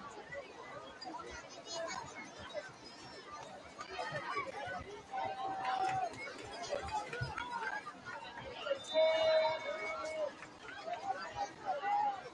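A crowd of spectators cheers and shouts in the open air.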